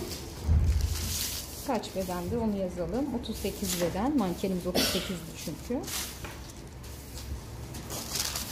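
Paper rustles as hands move sheets around.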